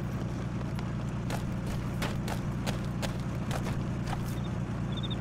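Footsteps run quickly over dry grass and gravel.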